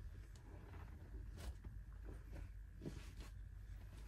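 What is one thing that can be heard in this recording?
A thick blanket rustles as a person settles into bed.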